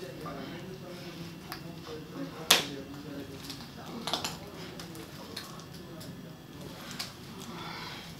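A woman talks quietly nearby.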